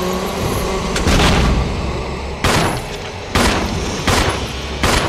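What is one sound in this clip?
A shotgun fires loud blasts several times.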